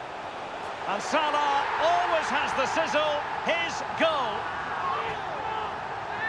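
A stadium crowd roars loudly in cheer.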